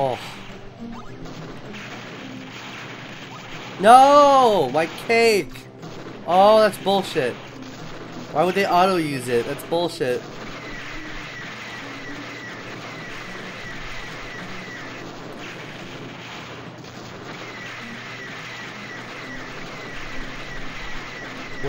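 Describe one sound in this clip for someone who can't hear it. A gun fires in rapid shots.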